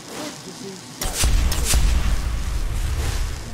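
A magic spell hums and crackles loudly.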